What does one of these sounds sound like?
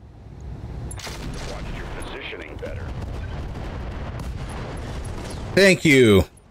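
Missiles streak through the air and explode with deep rumbling blasts.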